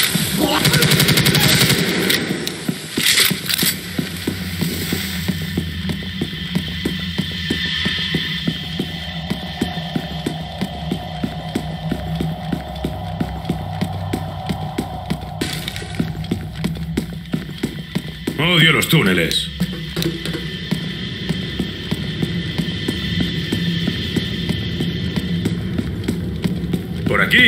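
Footsteps tread quickly and steadily on a hard floor.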